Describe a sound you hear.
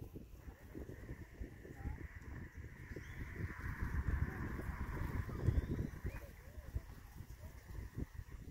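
Goslings peep softly.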